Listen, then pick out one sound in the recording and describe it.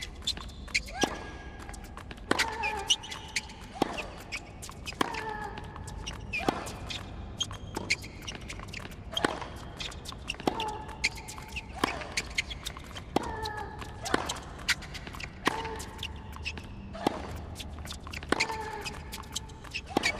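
Tennis rackets strike a ball in a steady rally, with sharp pops every second or so.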